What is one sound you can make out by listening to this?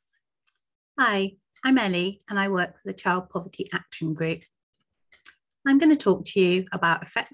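A woman speaks calmly through an online call microphone.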